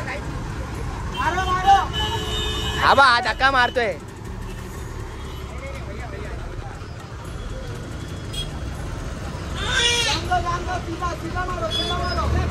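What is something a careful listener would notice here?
A bus engine rumbles low and steadily.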